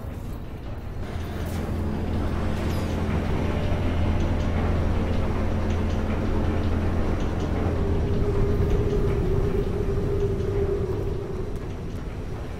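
A deep mechanical hum drones steadily, then fades.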